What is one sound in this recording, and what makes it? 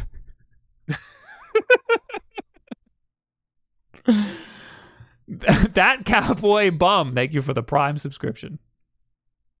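A second man laughs heartily over an online call.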